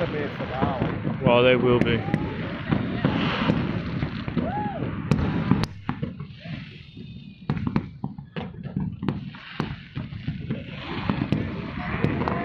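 Fireworks pop and crackle in the distance.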